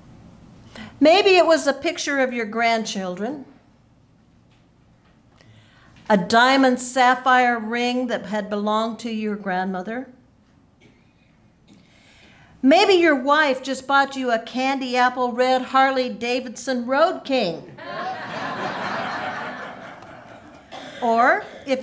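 A woman sings slowly and tunefully through a microphone, in phrases with pauses between them.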